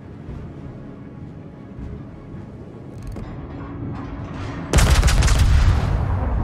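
Waves wash softly against a ship's hull.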